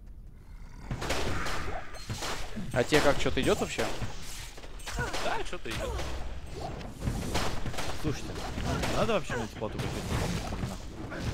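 Magic spells crackle and burst.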